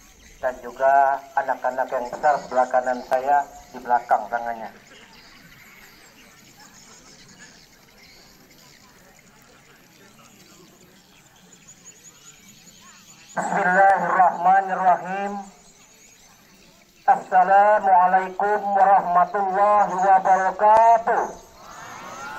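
A man speaks through a microphone and loudspeakers outdoors, in a formal, measured way.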